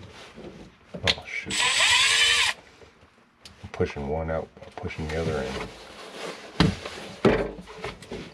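Plastic pipes knock and clatter as a man works on them.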